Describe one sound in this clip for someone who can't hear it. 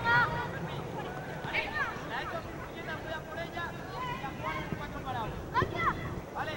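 Young players shout and call to each other across an open outdoor pitch.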